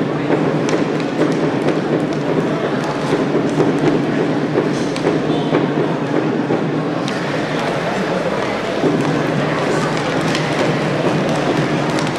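Skate wheels roll and scrape across a hard floor.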